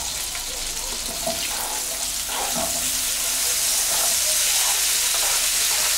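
Chopped vegetables tumble into a sizzling pan.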